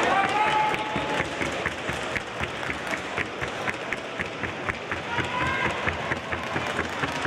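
A horse's hooves tap quickly and evenly on a hard floor.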